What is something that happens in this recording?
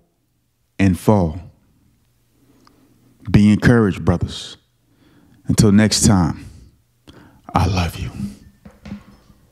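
A young man speaks close into a microphone in short, animated bursts.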